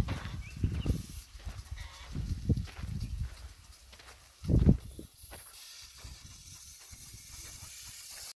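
Tall grass rustles in the wind.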